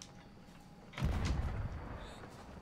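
A cannon fires with a loud boom.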